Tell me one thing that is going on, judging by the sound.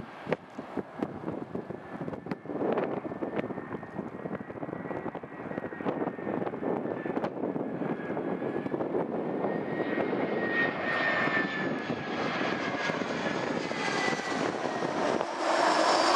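A jet airliner's engines roar and whine as it approaches, growing steadily louder.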